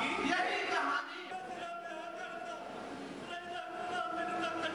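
A man speaks with emotion through a microphone.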